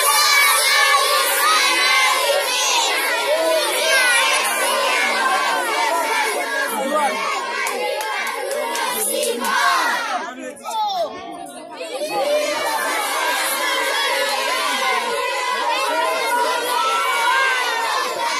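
A crowd of children sings and chants loudly together outdoors.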